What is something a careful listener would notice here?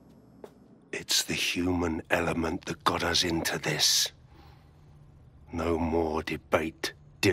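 A man speaks firmly and with force, close by.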